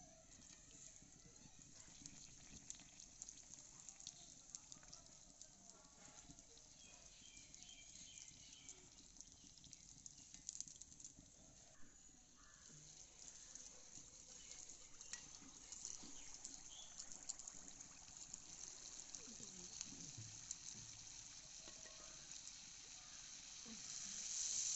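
Hot oil sizzles and crackles steadily in a pan.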